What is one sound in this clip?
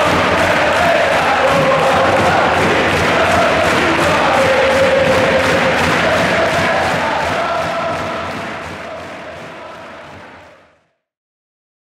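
A large crowd chants and sings loudly in an echoing arena, then fades out.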